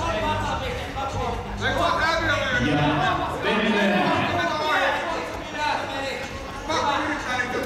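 Heavy cloth rustles as two wrestlers grapple on a mat.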